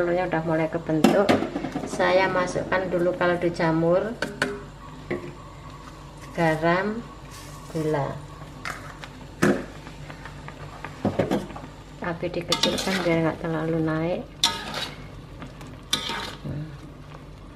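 Food sizzles in a hot pan.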